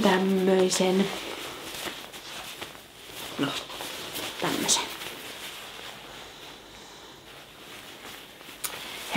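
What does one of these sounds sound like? Fabric rustles as clothing is handled.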